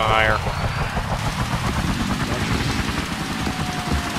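A helicopter rotor whirs loudly.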